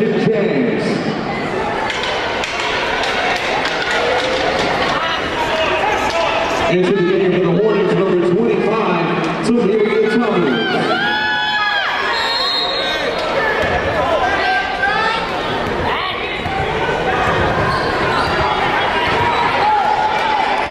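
Young women shout and cheer in a large echoing arena.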